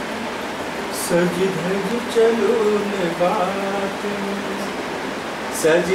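An elderly man reads aloud in a steady voice nearby.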